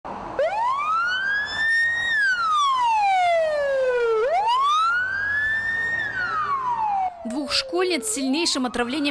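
An ambulance siren wails loudly up and down, close by.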